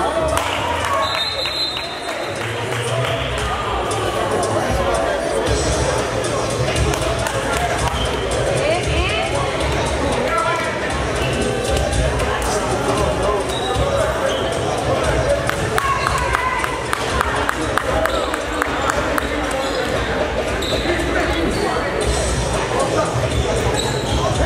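A basketball bounces on a wooden court floor.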